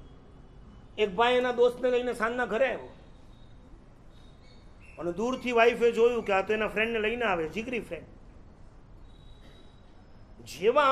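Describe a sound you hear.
An elderly man speaks calmly and expressively into a close microphone, with pauses.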